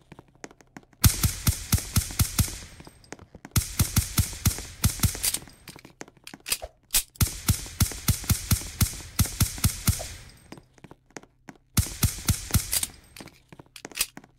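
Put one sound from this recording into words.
Rapid gunshots ring out in loud bursts.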